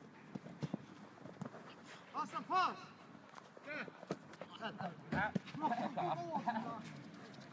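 Footsteps thump as players run.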